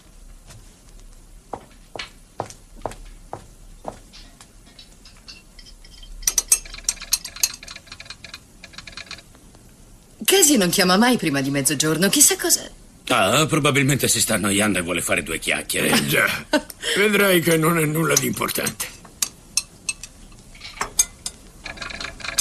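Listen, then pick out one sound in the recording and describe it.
Chess pieces click on a board.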